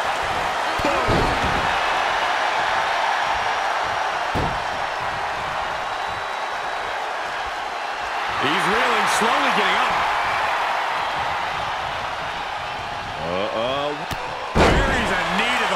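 Bodies slam heavily onto a wrestling ring mat with dull thuds.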